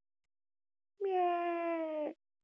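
A young woman's voice draws out a long, high, sung sound through a microphone.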